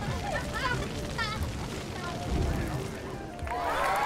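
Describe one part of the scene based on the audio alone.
A fire-breather blows out a roaring burst of flame.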